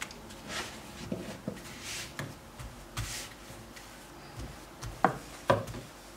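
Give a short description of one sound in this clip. A wooden rolling pin rolls and knocks softly on a stone counter.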